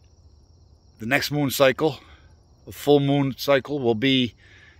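A man speaks close by in a low, calm voice.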